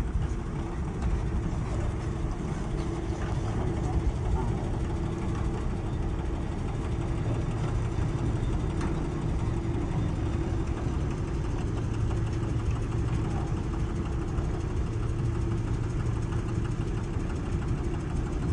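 A diesel engine of a multi-axle heavy transporter rumbles low and steady.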